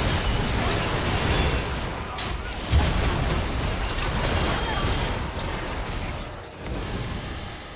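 Spell effects burst and crackle in a fast video game battle.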